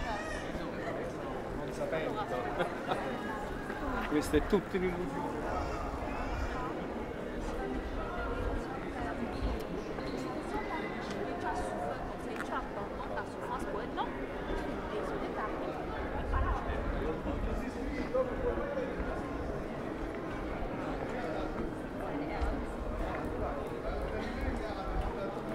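Footsteps tap on paving stones nearby.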